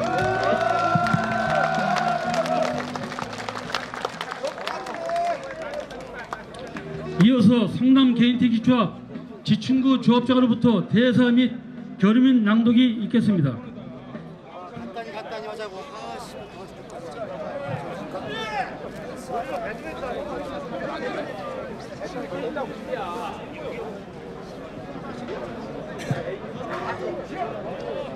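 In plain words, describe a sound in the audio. A man speaks into a microphone over loudspeakers, echoing outdoors.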